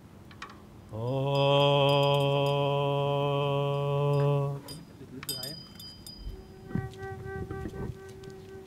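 A flute plays a sustained melody.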